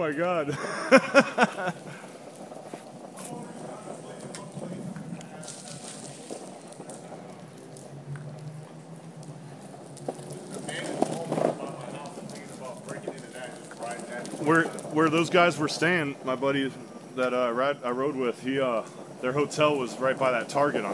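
Skateboard wheels roll steadily over rough asphalt.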